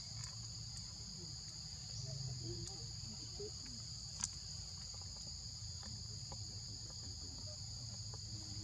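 A baby monkey suckles softly.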